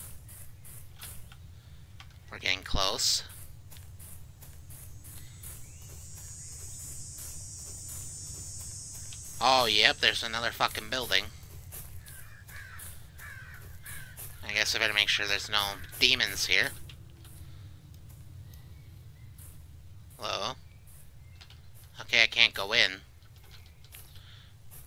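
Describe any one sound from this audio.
Footsteps crunch steadily on dry leaves.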